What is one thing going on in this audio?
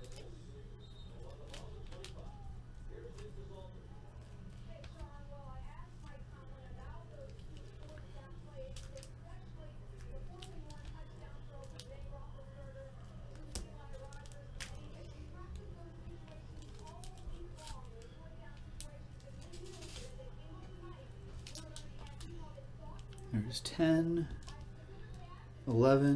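Foil packs crinkle and rustle in hands.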